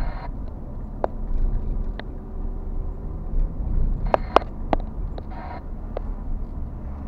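The car's body rattles and clicks over bumps.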